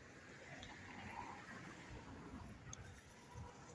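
A small stream trickles quietly outdoors.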